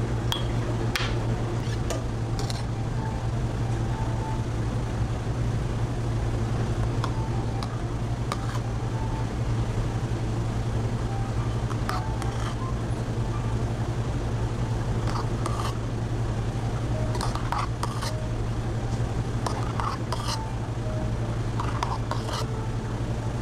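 A metal spoon clinks against a steel milk pitcher.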